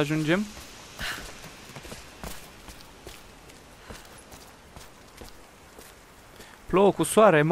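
Footsteps scrape and tap on stone.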